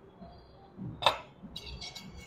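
A glass plate clinks on a stone counter.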